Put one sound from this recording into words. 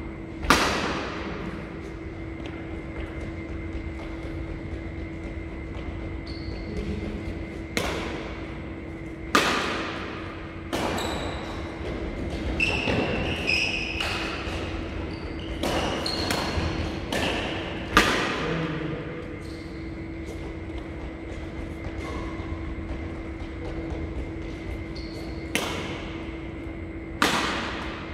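Rackets strike a shuttlecock with sharp smacks that echo around a large hall.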